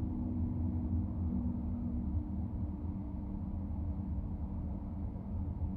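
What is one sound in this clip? Slow traffic rumbles on all sides.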